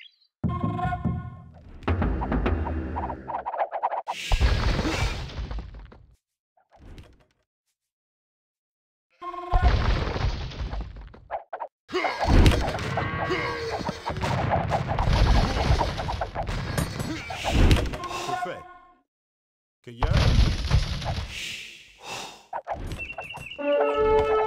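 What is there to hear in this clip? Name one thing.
Muskets crack and pop in a battle.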